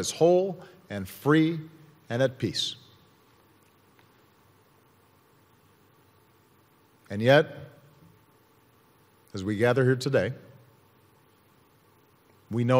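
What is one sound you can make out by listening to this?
A man speaks slowly and deliberately into a microphone, with long pauses, in a large echoing hall.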